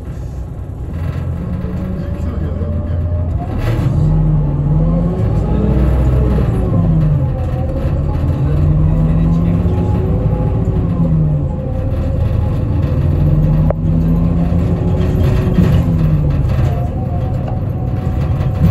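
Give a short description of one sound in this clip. Train wheels rumble on the rails.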